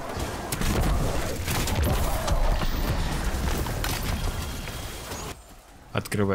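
Loud gunfire and energy blasts crackle and roar.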